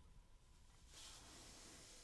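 Plastic crinkles and taps as fingers handle a small cup.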